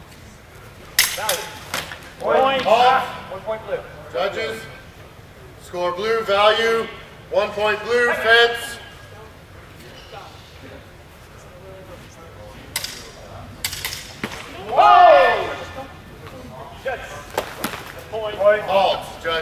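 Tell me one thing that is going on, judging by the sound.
Longswords clash in a large echoing hall.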